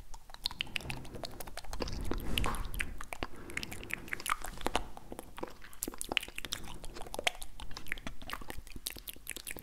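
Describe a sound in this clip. A man whispers softly, very close to a microphone.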